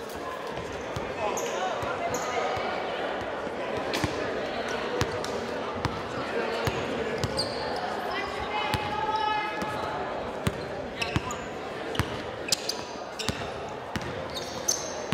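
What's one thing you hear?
A crowd murmurs and chatters in the background.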